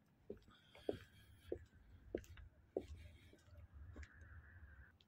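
Footsteps fall at an even pace on pavement outdoors.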